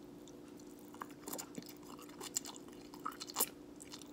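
A man slurps and chews noodles noisily close by.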